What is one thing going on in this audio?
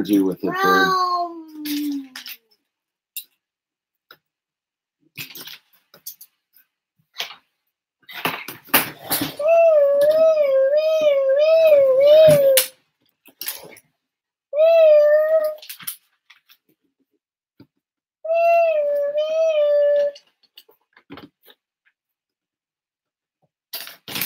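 Plastic toy bricks click and clatter.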